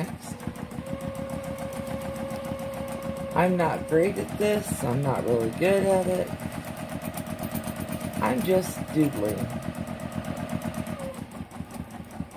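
A sewing machine hums and rattles rapidly as it stitches.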